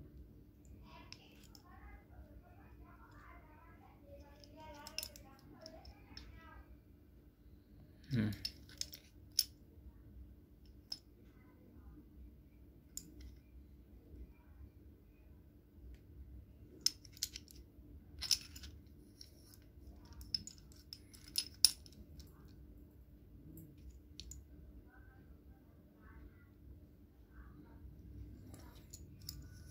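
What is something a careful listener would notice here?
Metal clamps clink and knock together in hands.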